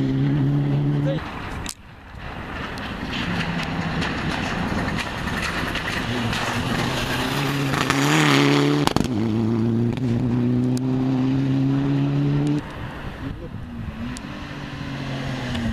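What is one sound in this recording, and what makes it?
A rally car engine roars loudly and revs as the car speeds past close by.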